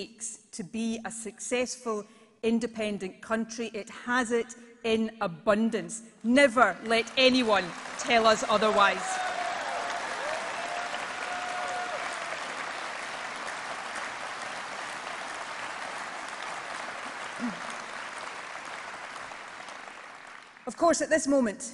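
A woman speaks firmly into a microphone over loudspeakers in a large hall.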